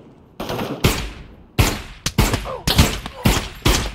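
Suppressed pistol shots pop in quick bursts.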